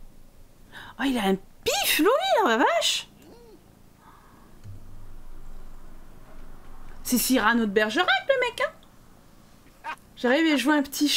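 A young woman talks with animation close to a microphone, with sudden high-pitched exclamations.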